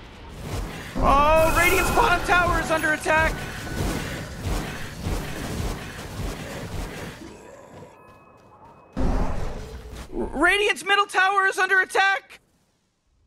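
Game sound effects ring out with rising chimes.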